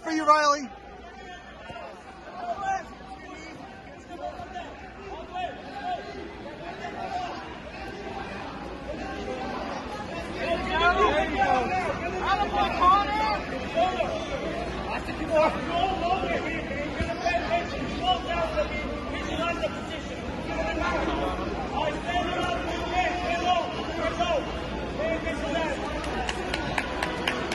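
A crowd in a large echoing hall chatters and shouts throughout.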